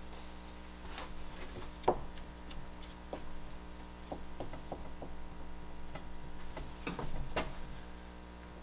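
Tools knock lightly on a work surface.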